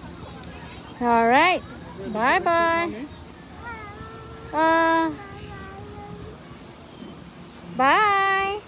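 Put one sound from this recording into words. A young child shouts and squeals loudly close by.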